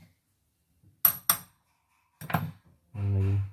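Small metal parts click and clink.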